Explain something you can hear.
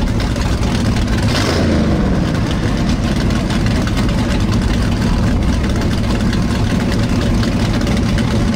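A car engine idles with a loud, deep rumble close by.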